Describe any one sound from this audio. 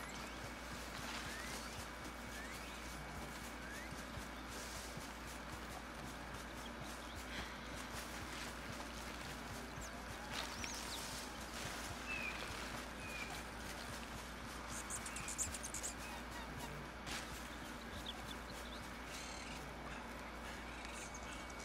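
Leafy plants rustle as a man pushes through them.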